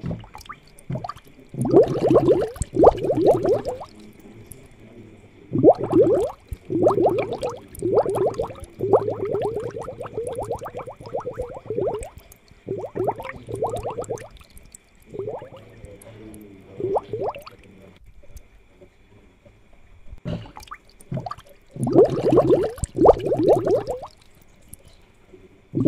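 Air bubbles gurgle softly up through water.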